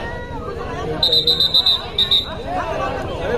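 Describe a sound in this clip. A referee blows a whistle in short sharp bursts.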